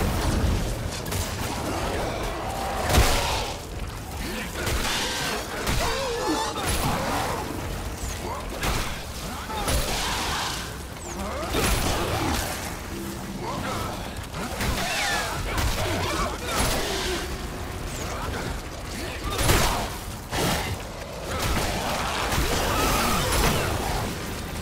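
A creature screeches and snarls.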